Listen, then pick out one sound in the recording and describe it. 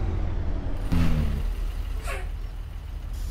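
A bus crashes with a thud into a truck.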